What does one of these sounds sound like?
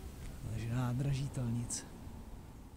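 A man speaks briefly and casually, close to the microphone.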